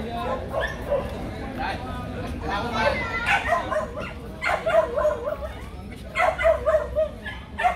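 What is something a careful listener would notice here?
A crowd of men chatters and calls out nearby, outdoors.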